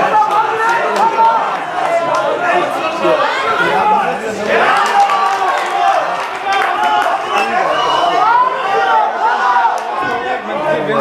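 A crowd of men and women shouts and cheers loudly in a large echoing hall.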